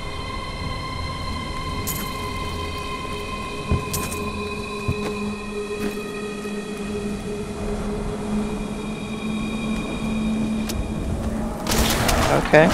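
Game music plays with steady held tones.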